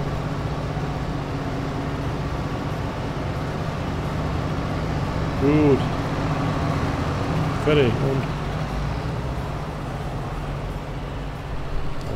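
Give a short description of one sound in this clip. A heavy farm machine engine drones steadily.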